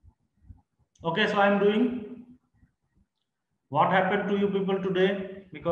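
A woman speaks through a microphone in a lively teaching tone.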